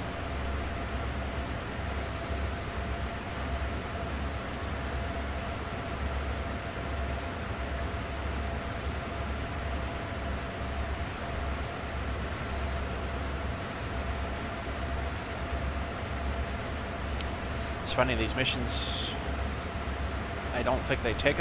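Train wheels roll and clatter over the rails.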